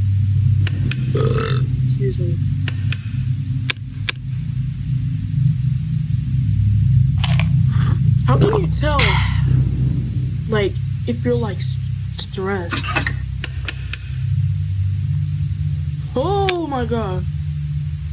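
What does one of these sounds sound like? A young man talks quietly close to a microphone.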